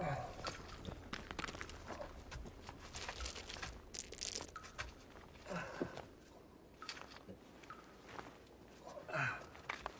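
A man breathes heavily and grunts with effort.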